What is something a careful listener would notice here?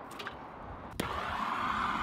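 A gas torch lights with a sharp pop.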